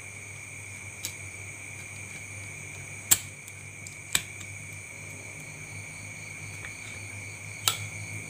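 Metal parts click and tap as a small motor is handled.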